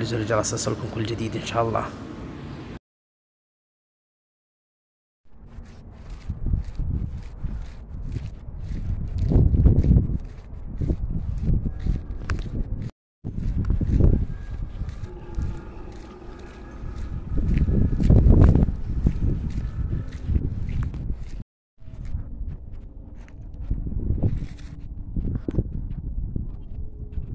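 A camel's feet thud softly on sand.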